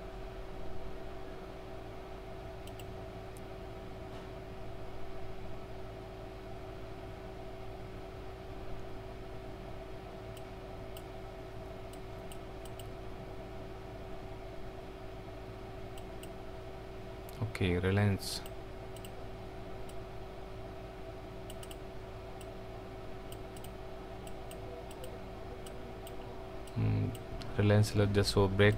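A mouse clicks now and then.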